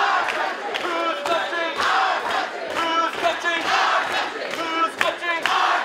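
A large crowd of men and women chants and cheers loudly close by.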